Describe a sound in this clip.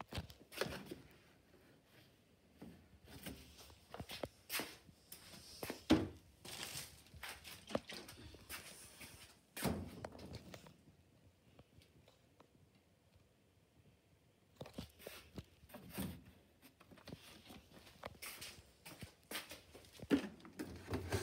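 A plastic jug knocks and thumps as it is picked up and set down.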